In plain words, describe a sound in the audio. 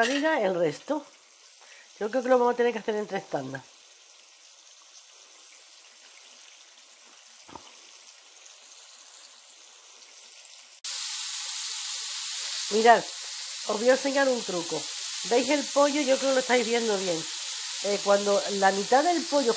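Oil sizzles gently in a frying pan.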